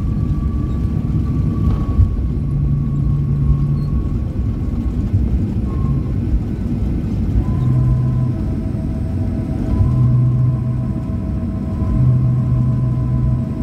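Aircraft wheels thump and rattle over the runway.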